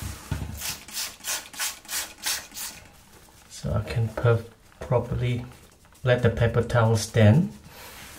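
A hand rubs across a smooth surface.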